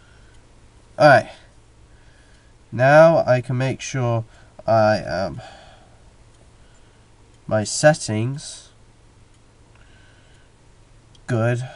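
A young man speaks in short bursts into a headset microphone, close up.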